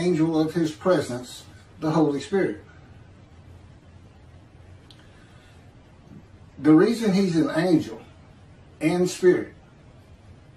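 A middle-aged man speaks calmly in short phrases, close to a microphone, as if on an online call.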